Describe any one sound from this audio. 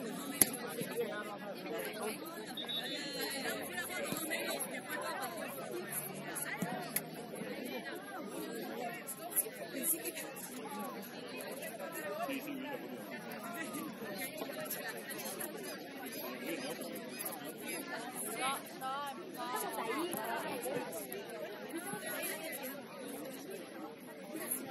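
Young women chatter and call out outdoors.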